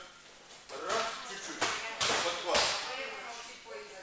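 A body thuds onto a padded mat.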